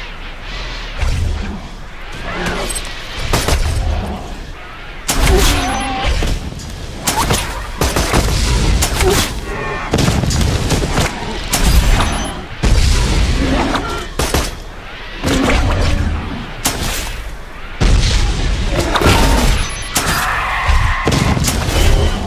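Guns fire in bursts.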